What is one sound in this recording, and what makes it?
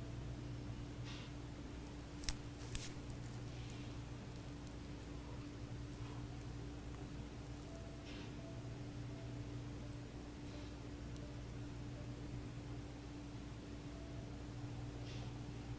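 A woman breathes slowly and softly close by.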